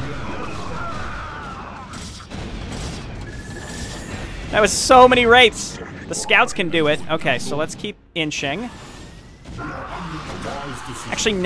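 Energy weapons zap and blast in a fierce game battle.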